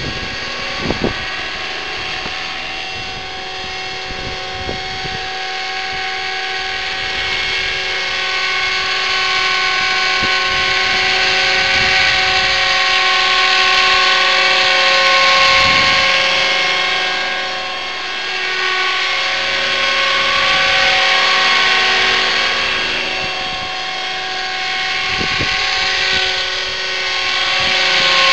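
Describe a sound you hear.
A model helicopter's small motor whines steadily and its rotor whirs close by, rising and falling as it hovers.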